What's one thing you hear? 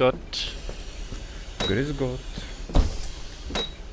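A bus door hisses and thuds shut.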